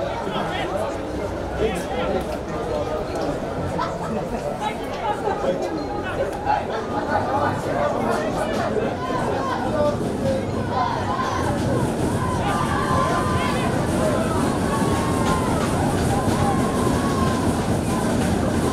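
Young men shout and call to each other outdoors across an open field.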